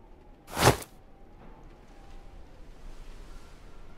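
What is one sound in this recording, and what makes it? A large pop-up book opens with a rustle of paper.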